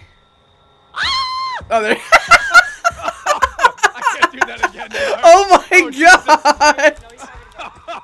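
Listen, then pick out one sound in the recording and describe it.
A young man laughs loudly into a close microphone.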